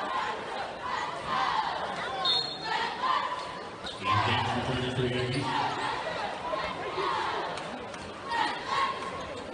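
Basketball shoes squeak on a hardwood court in a large echoing gym.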